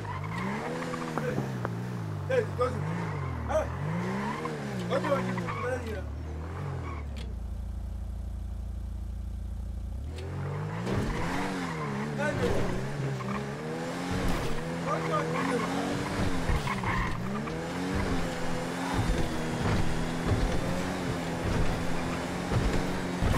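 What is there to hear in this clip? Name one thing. A car engine revs up and down, idles briefly, then roars as the car accelerates.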